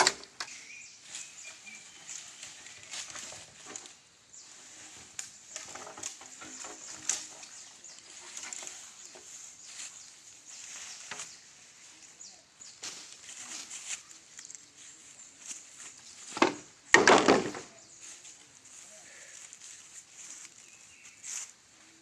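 A long bamboo pole scrapes and rustles through grass as it is dragged.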